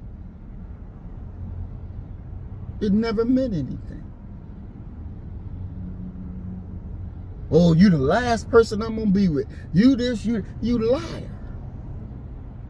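A car engine hums low and steady inside the cabin.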